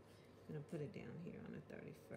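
Fingers press and smooth a paper sticker onto a page with a soft rustle.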